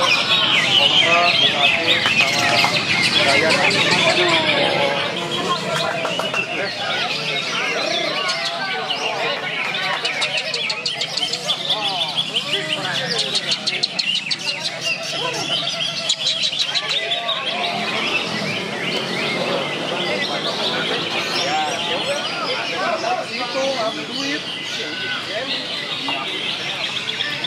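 Many caged birds chirp and sing loudly.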